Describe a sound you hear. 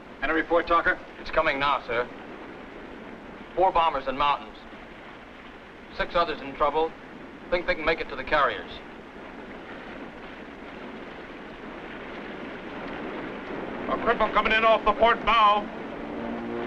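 A man speaks in a clipped, urgent voice.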